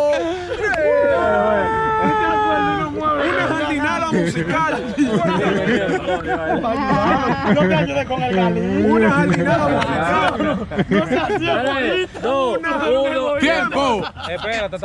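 A young man laughs loudly and speaks with animation close by.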